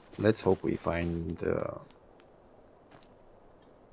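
Footsteps scuff softly on stone.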